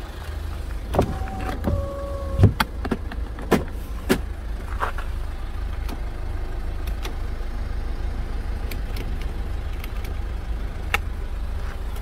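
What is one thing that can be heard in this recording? Plastic switches click sharply under a finger.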